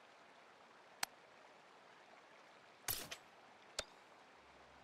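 Short interface clicks sound.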